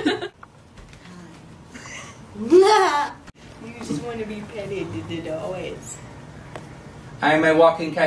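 A young woman laughs and talks cheerfully.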